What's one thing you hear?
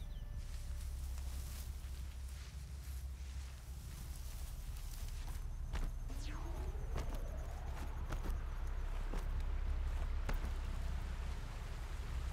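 Footsteps rustle through grass and crunch on stones.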